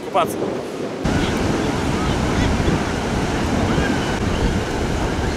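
Waves wash onto a beach.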